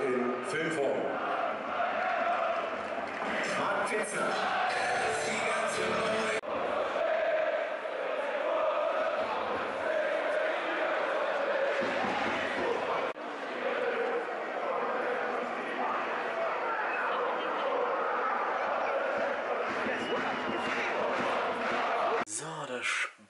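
A large stadium crowd chants and sings loudly.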